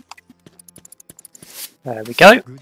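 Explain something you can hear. A broom sweeps with soft brushing strokes.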